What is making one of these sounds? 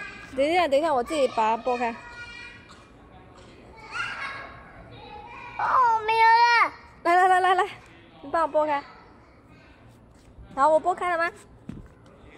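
A young boy talks close by in a high, lively voice.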